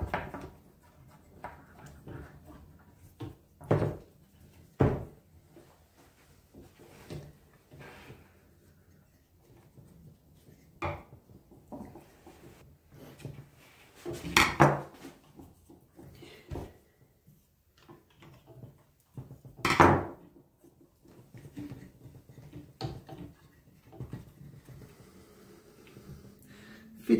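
Small wooden piano parts click and knock.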